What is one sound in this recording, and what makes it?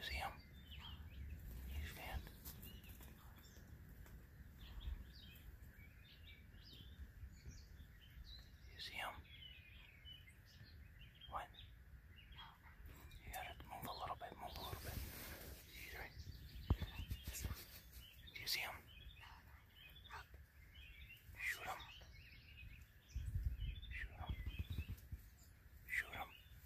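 A turkey gobbles in the distance.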